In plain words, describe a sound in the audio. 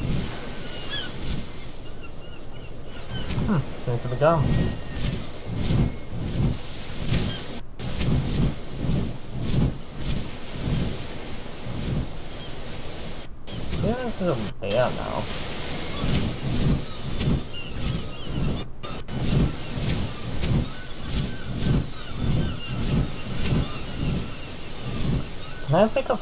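A large bird's wings flap with rhythmic whooshing beats.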